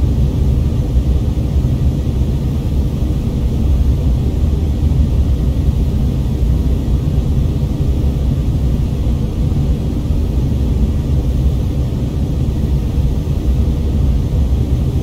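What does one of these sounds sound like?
A jet engine hums with a steady, deep drone.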